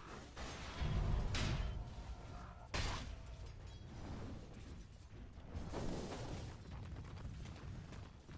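Magic blasts crackle and whoosh during a fight.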